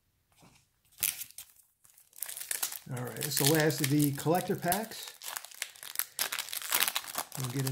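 A plastic wrapper crinkles loudly up close.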